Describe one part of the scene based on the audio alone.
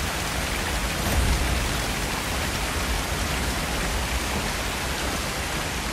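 A fire crackles and roars nearby.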